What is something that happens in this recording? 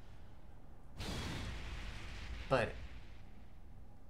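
A loud whooshing burst rushes in and fades away.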